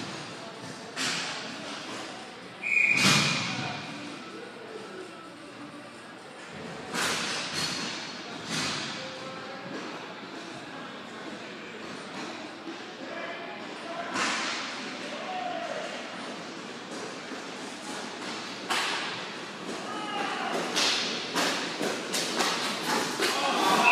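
Hockey sticks clack and knock on a ball across a hard rink floor, echoing in a large hall.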